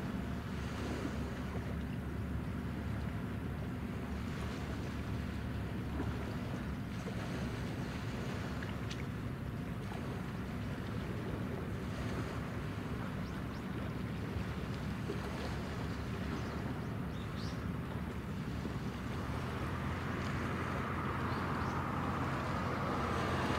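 A motorboat engine drones across open water.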